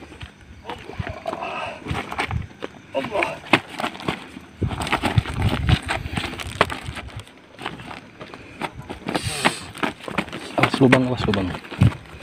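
A young man shouts and growls wildly nearby.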